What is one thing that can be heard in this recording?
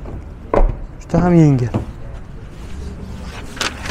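A car door handle clicks as the door unlatches and swings open.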